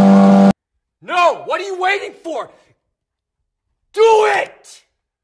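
A man shouts loudly with intense energy.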